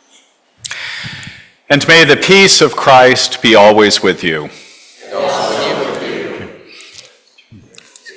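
An elderly man speaks through a microphone in an echoing hall.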